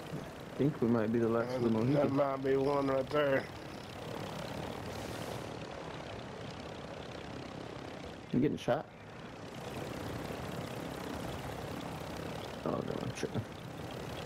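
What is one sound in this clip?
An attack helicopter's rotor thrums in flight.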